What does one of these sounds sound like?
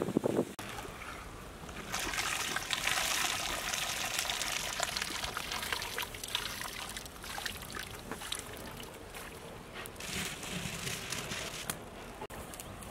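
Water bubbles and simmers in a large pot.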